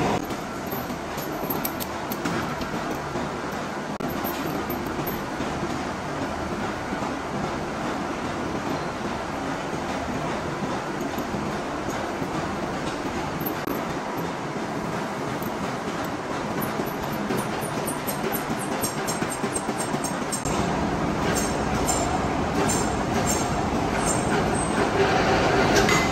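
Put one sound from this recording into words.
Steel hoist chains clink against a metal gear.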